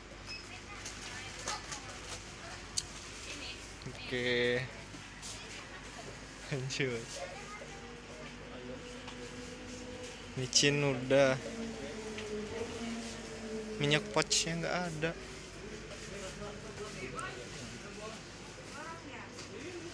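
Plastic snack packets rustle in a shopping basket.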